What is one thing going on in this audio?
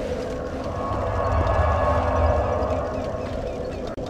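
A deep rushing whoosh swells and fades.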